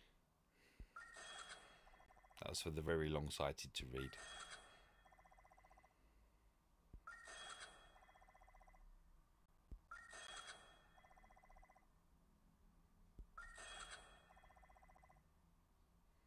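A game menu plays bright chiming upgrade sounds again and again.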